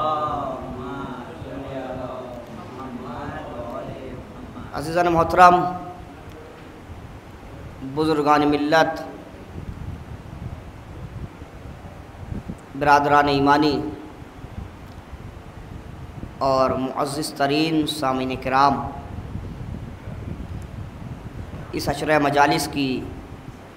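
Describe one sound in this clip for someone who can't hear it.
A young man recites in a chanting voice through a microphone, in loud bursts with pauses between them.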